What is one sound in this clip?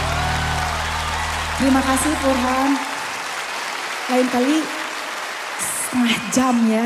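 A large crowd claps and cheers in a big echoing hall.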